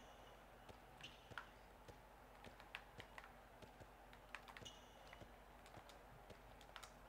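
A handball bounces on a hard court.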